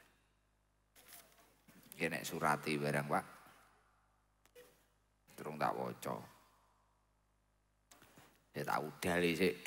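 An elderly woman speaks with feeling into a microphone, in bursts with pauses, in an echoing space.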